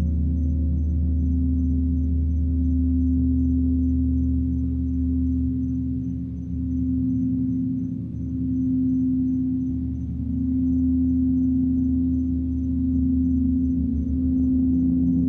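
A large gong rumbles low and deep.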